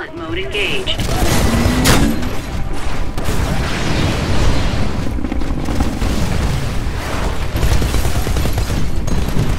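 A heavy mechanical gun fires in rapid bursts.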